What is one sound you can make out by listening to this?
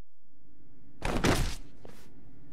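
A body thuds heavily onto the floor.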